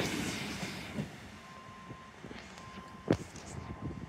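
A train rumbles past on the tracks and fades into the distance.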